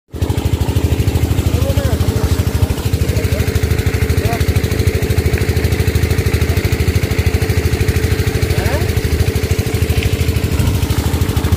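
Water gushes from a hose and splashes onto the ground.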